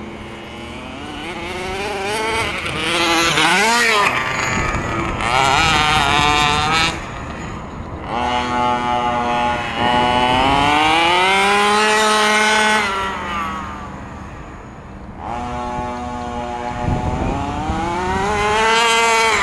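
A 1/5-scale gas-powered radio-controlled truck engine revs and races, its pitch rising and falling.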